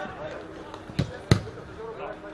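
A football thuds off a foot with a sharp kick.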